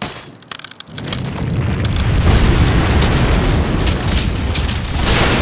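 A deep rumbling roar swells as rock crumbles in a cloud of dust.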